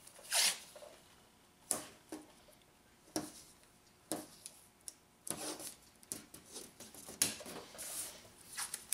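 Masking tape crinkles and tears close by.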